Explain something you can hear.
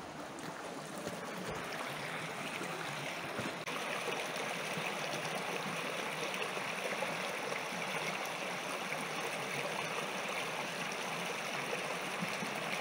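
A shallow stream trickles and gurgles over stones, growing louder and then steady.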